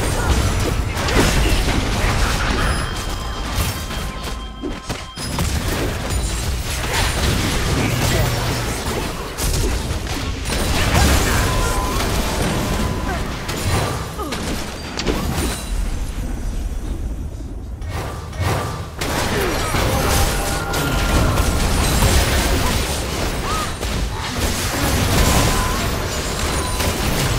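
Magic blasts and sword hits from a video game battle burst and clash repeatedly.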